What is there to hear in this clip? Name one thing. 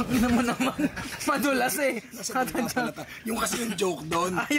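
A young man talks cheerfully up close.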